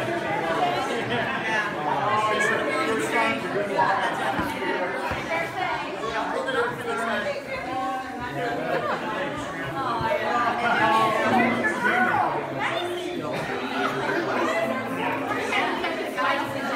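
Several men and women chat and greet each other with animation, close by.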